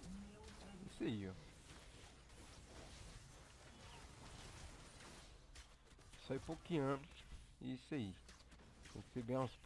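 Magic spells crackle and whoosh during a battle.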